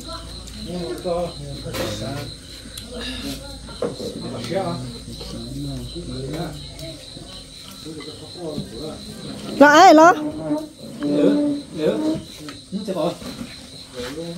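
Spoons and chopsticks clink against bowls.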